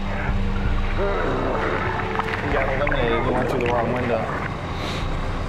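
A young man gasps and shouts while swimming.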